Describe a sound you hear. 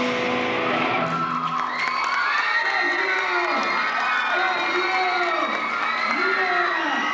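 An electric guitar plays bending, wailing notes through an amplifier in a large hall.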